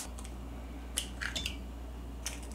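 An egg cracks and drops into a glass jug.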